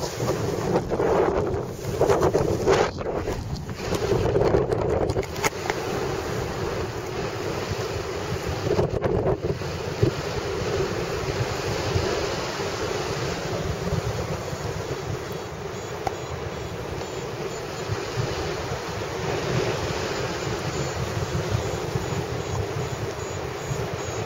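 Wind rushes loudly past high in the open air, gusting harder at first and then steadying.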